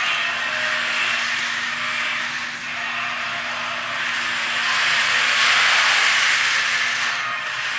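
A toy car's small electric motor whirs as it drives across a smooth floor.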